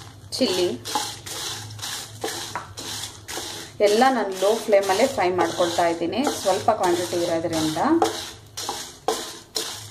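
A wooden spoon scrapes and stirs seeds in a pan.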